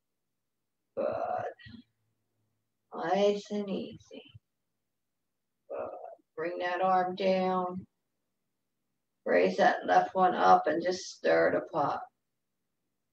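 An elderly woman speaks calmly in short phrases over an online call.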